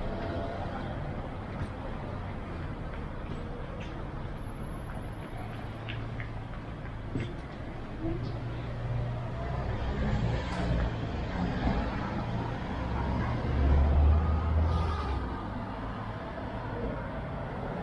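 Traffic hums steadily along a nearby street outdoors.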